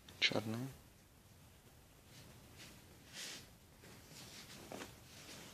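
Fabric rustles softly as clothes are handled.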